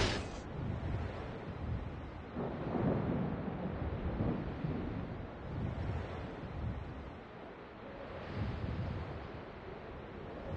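Water washes against a ship's hull.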